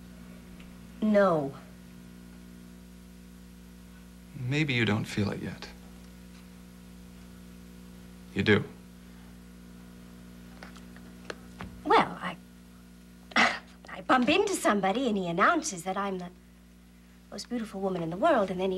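A woman speaks calmly and close by, in short phrases.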